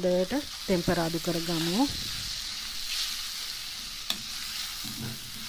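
A spoon scrapes and stirs in a frying pan.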